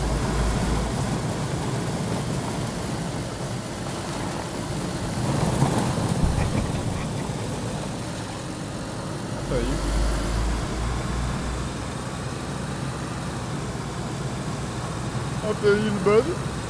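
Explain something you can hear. A car engine drones steadily as a car drives along.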